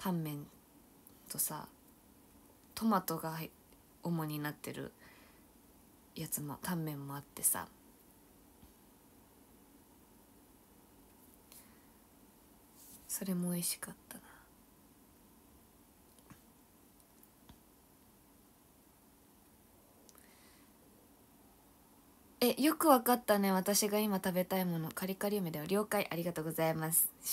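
A young woman talks close to a microphone in bursts, with pauses between.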